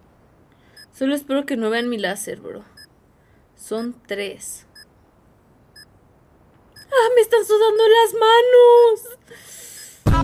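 A young woman speaks close to a microphone with animation.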